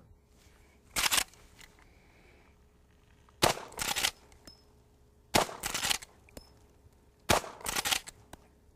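A gun fires several loud shots outdoors, each followed by a short echo.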